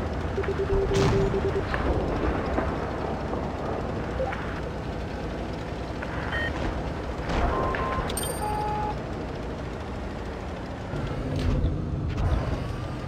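A tank engine rumbles steadily as the tank drives over rough ground.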